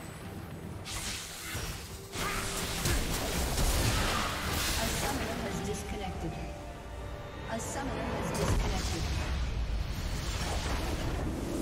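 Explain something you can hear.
Game battle effects crash and boom loudly.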